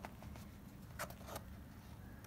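A cardboard flap clicks as it is pulled open.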